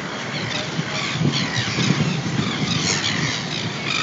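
People chatter at a distance outdoors.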